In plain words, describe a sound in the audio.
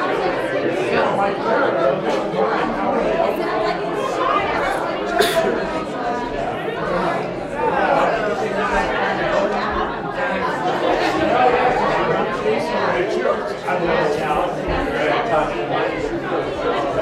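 A crowd of adults chats all at once, their voices overlapping.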